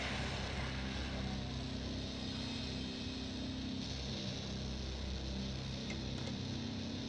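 Slow, dark music plays steadily.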